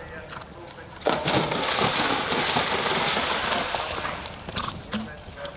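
Water splashes loudly as a horse gallops through it.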